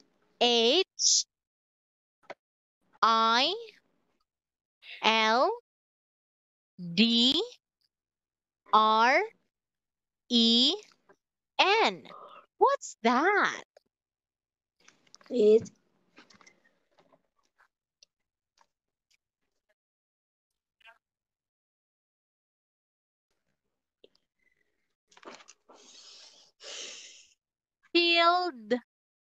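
A young woman speaks slowly and clearly over an online call, in short separate bursts.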